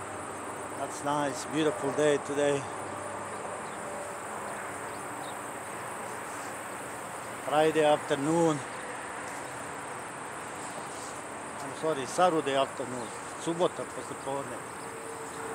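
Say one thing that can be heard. A man talks calmly close by, in short bursts.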